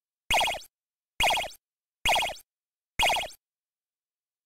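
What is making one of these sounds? A video game plays short, bright jingles one after another.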